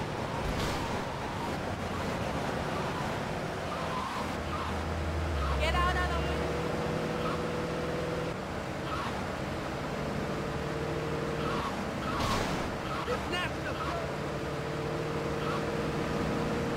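A car engine roars steadily as a car speeds along a road.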